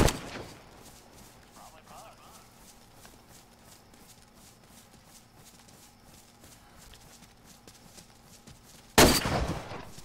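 Footsteps rustle through dry leaves and brush.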